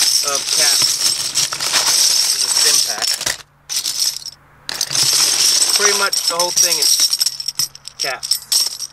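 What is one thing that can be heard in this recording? Metal bottle caps clatter and jingle as a hand rummages through them.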